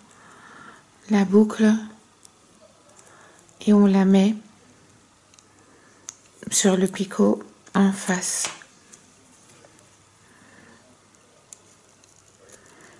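A knitting hook clicks softly against plastic loom pegs.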